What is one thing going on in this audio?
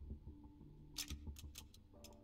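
A game pistol clicks and clatters as it is handled.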